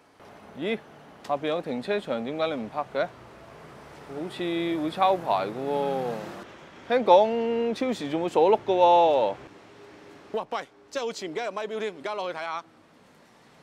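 A second young man answers calmly close by.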